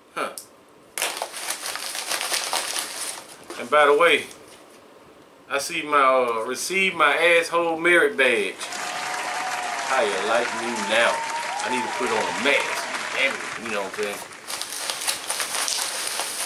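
A plastic packet crinkles and rustles as it is torn open.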